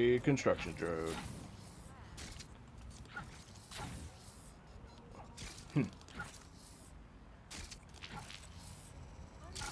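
A small mechanical robot skitters along with quick metallic footsteps.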